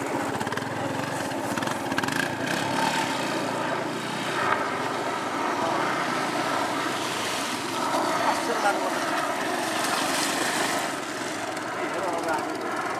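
A motorcycle engine idles and revs nearby.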